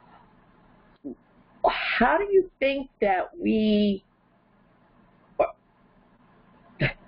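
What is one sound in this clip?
An elderly woman speaks with animation, close to a microphone.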